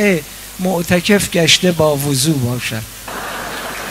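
A middle-aged man reads out with animation through a microphone in a large hall.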